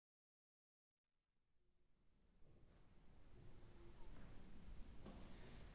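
An orchestra starts to play softly in a large echoing hall and slowly grows louder.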